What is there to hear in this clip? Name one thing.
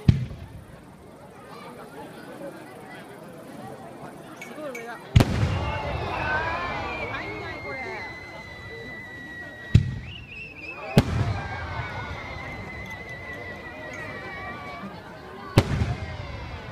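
Fireworks burst with loud booming bangs.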